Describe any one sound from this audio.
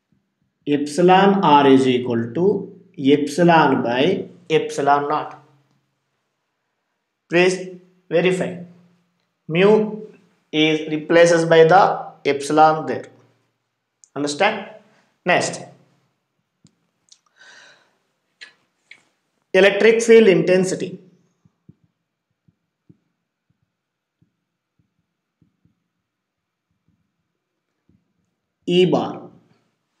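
A man speaks calmly and clearly nearby.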